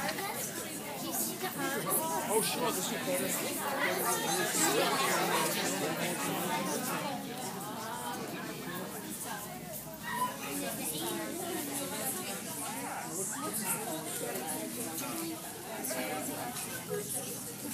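A crowd of men and women chatters throughout a large echoing hall.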